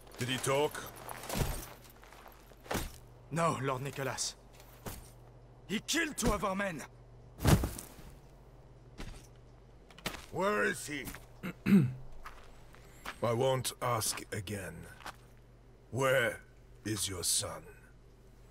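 A man speaks in a low, menacing voice, close by.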